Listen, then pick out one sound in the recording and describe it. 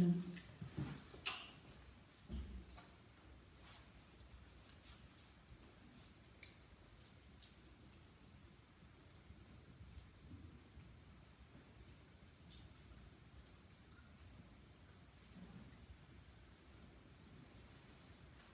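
A woman rubs her hands together softly.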